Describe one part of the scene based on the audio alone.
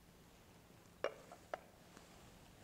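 A metal cup clinks against a table.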